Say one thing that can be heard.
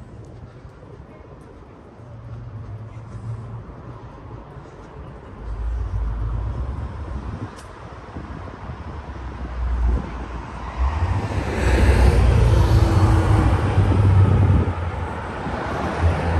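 Distant city traffic rumbles steadily.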